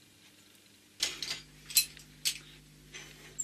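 Locking pliers snap shut on a steel bar.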